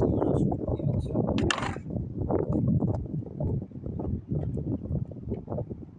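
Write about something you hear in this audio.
A skateboard rolls away over rough concrete with a low rumble.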